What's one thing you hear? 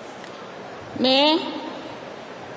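A woman speaks into a microphone in a formal, measured tone.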